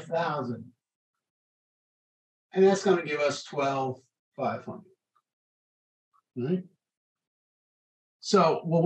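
An older man speaks calmly in short bursts, close to a microphone.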